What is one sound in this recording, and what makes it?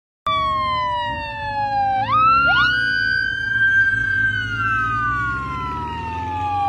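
A police motorcycle siren wails close by, sliding down and up in pitch.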